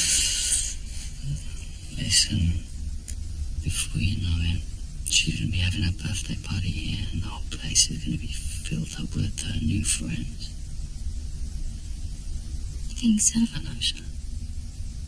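A woman whispers close by.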